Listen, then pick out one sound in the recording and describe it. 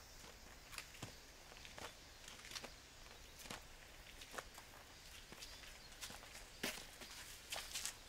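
Footsteps scuff on the ground outdoors.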